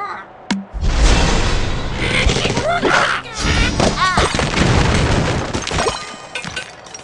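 Game blocks crash and clatter as a structure collapses.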